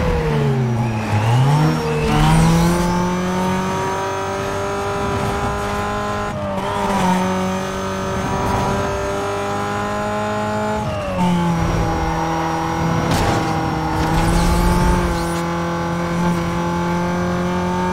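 A sports car engine roars at full throttle.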